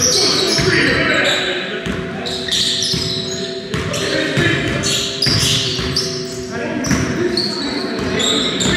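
A ball thuds on a wooden floor.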